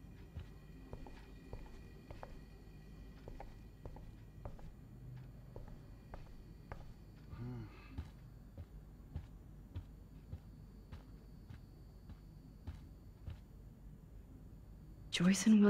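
Footsteps tap softly on a floor indoors.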